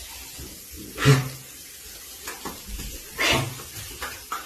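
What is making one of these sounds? A dog barks in a small echoing room.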